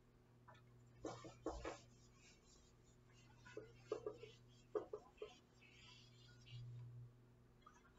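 An eraser rubs across a whiteboard in short strokes.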